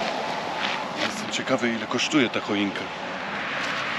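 A young man speaks close by, calmly.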